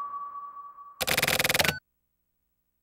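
A short burst of electronic noise sounds.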